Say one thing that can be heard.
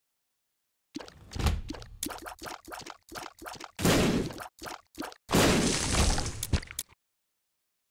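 Game tears fire with quick soft pops.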